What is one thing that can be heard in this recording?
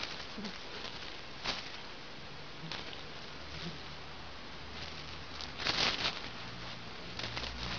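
A cat rolls about, its fur rustling and scuffing against a hard floor.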